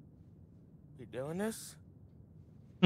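A young man asks a question.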